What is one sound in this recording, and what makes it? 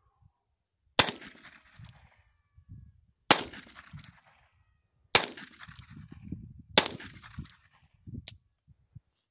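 A handgun fires sharp shots that echo across open ground.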